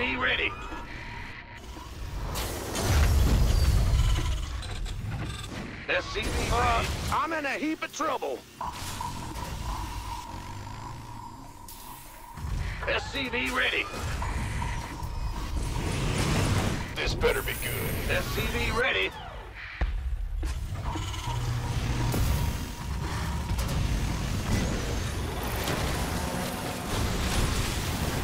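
Game sound effects of gunfire and explosions play.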